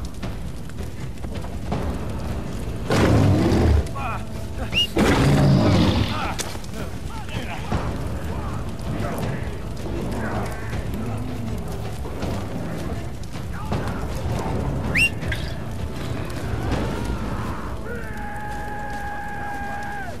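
Flames crackle and hiss.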